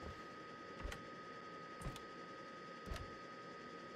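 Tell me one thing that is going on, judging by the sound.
A cabinet door clicks open.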